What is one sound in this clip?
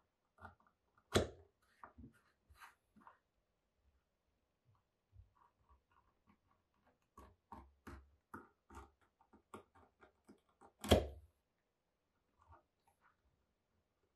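A craft knife scrapes and clicks against a small object.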